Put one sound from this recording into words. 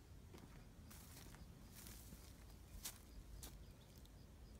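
Footsteps crunch through dry grass close by.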